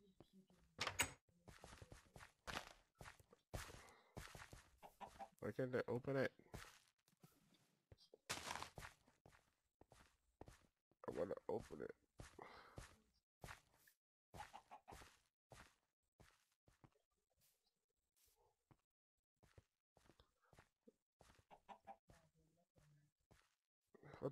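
Wooden blocks are placed with short, dull knocks.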